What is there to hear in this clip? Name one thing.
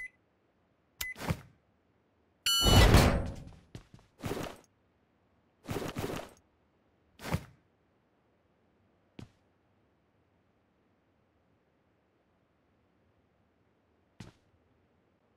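Gear rustles and clanks as a game character picks up items.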